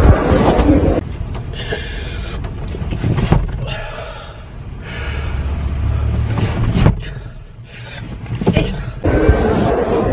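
A young man grunts and makes exaggerated noises close by.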